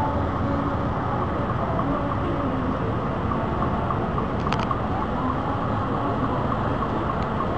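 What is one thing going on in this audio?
A large crowd murmurs in the distance outdoors.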